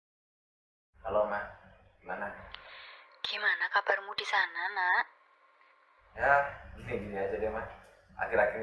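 A young man talks on a phone, close by.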